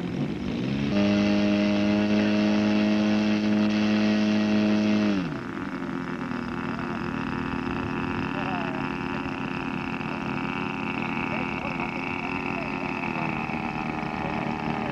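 A model plane engine roars loudly close by, then drops to an idle.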